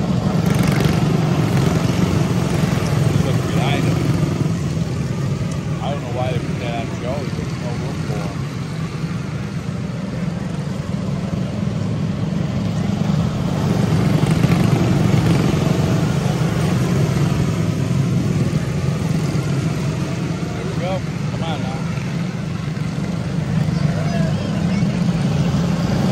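Small race car engines buzz and drone loudly as a pack of karts speeds past close by.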